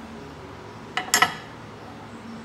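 A metal tool knocks down onto a wooden board.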